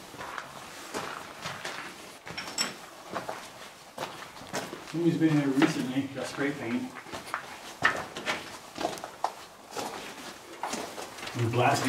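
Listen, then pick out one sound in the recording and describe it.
Footsteps crunch on loose gravel and rock.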